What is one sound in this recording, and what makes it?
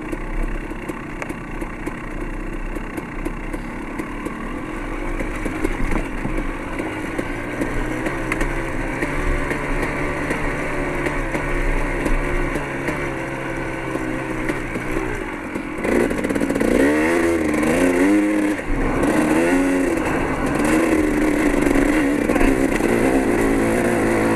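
A motorbike engine hums and revs up and down.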